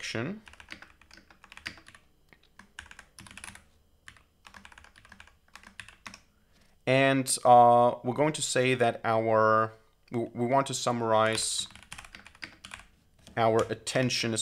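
Keys click quickly on a keyboard.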